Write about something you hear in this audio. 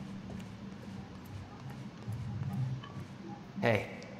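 Footsteps run across a hard floor.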